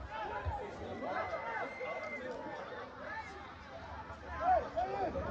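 Spectators chatter and call out in the distance.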